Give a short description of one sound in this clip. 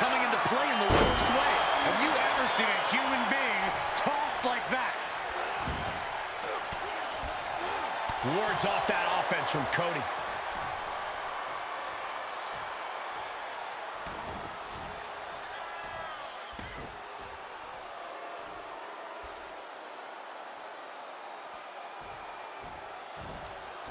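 A large crowd roars and cheers in a big arena, then quiets down.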